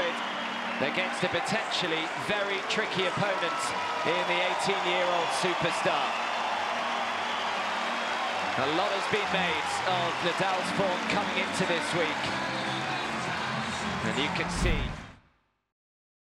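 A large crowd cheers and applauds in a big open arena.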